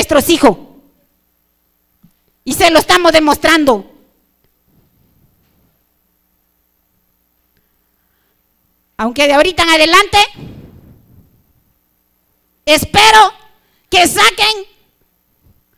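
A man shouts short phrases through a loudspeaker in a large echoing hall.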